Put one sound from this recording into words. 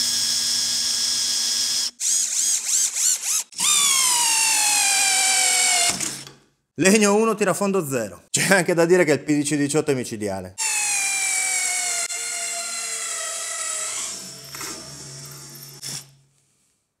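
A cordless drill whirs at high speed, then winds down.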